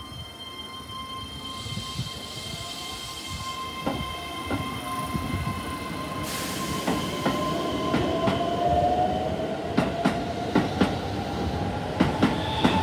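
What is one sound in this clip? A train pulls out, its motor whining steadily higher as it speeds up.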